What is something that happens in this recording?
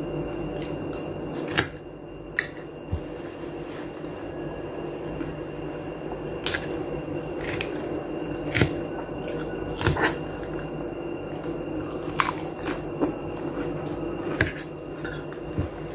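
A woman slurps and chews food close by.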